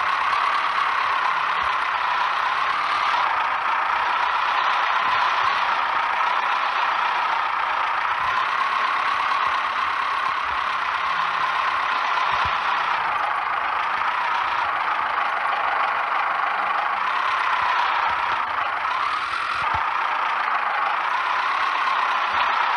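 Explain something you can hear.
Tyres crunch over rocks and gravel.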